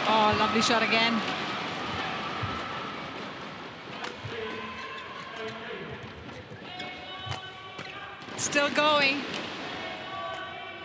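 Rackets strike a shuttlecock in a quick rally in a large echoing hall.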